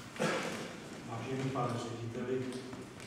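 A man speaks calmly into the room.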